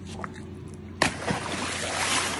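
Something heavy splashes into water.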